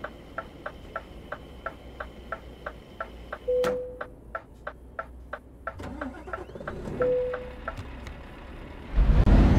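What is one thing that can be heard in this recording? A fuel pump ticks steadily.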